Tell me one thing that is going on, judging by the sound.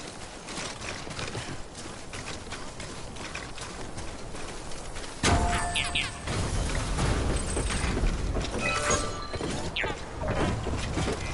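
Footsteps crunch steadily over rough ground.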